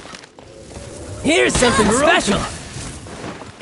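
Fiery blasts burst loudly.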